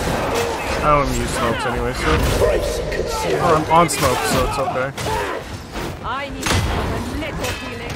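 A blade hacks and slashes with heavy thuds.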